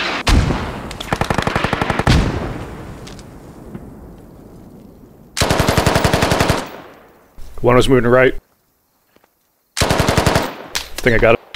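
An assault rifle fires in rapid automatic bursts.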